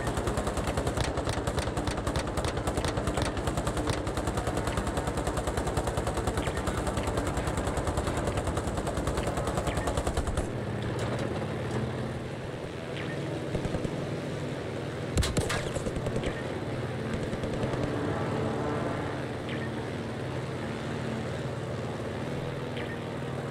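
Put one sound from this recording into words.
A propeller plane's engine drones in a video game.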